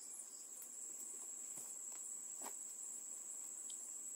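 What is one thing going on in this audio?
A man scoops loose soil with a bowl.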